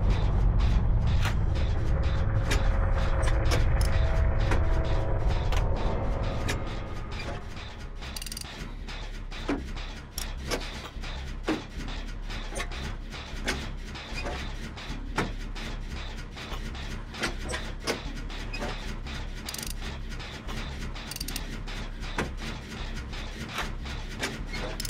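An engine rattles and clicks as someone tinkers with it.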